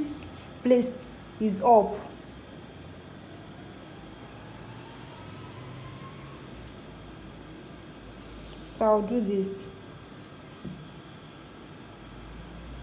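Fabric rustles softly as hands fold and pin it.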